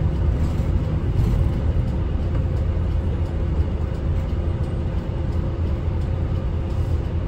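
A bus engine hums and rumbles steadily from inside while driving.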